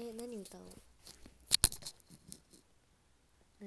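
Earphone cables rustle and tap against a microphone.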